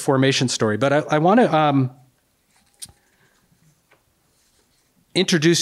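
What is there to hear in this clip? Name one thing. An older man reads aloud into a microphone in a calm, expressive voice.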